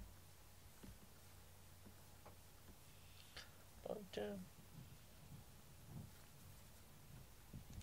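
A hand softly strokes a cat's fur.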